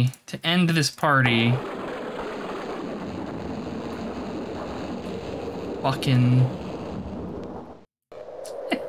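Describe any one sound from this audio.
A magic spell crackles and whooshes.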